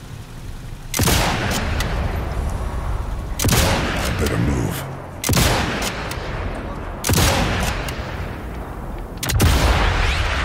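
Rifle shots crack loudly, one after another.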